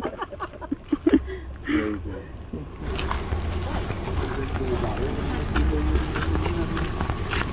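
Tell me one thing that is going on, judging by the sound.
Several men talk casually nearby outdoors.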